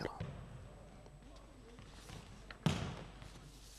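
A volleyball is struck with a hand and echoes through a large hall.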